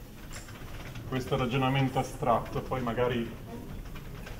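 A man speaks in a lecture voice, nearby.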